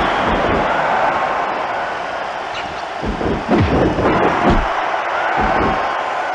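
A large crowd roars steadily.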